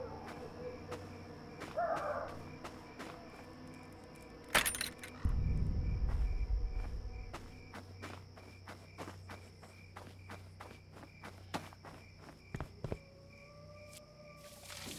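Footsteps crunch steadily on the ground.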